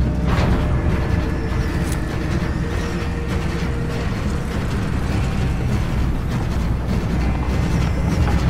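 An aircraft's engines rumble steadily from inside the cabin.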